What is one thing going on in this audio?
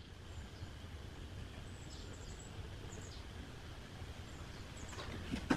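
A plywood panel is shifted against a wooden box.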